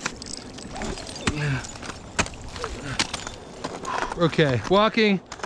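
Ice axes strike and chip into hard ice.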